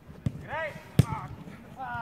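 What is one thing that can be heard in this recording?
A football thuds as a player kicks it.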